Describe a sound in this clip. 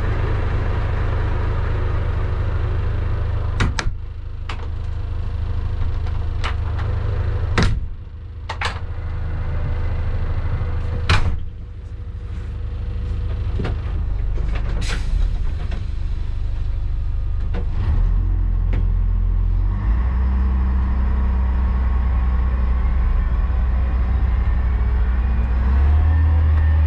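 A locomotive engine rumbles steadily.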